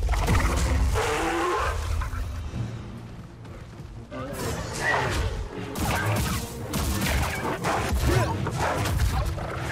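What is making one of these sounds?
A creature roars and growls.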